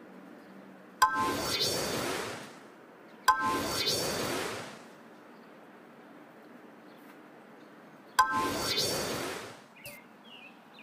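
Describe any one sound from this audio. A sparkling game chime sounds.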